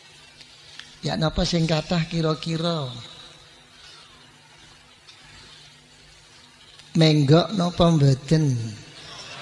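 An elderly man speaks slowly and calmly through a microphone.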